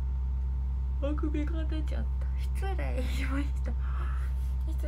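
A young woman laughs behind her hands.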